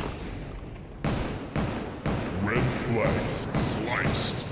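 A gun fires repeated shots.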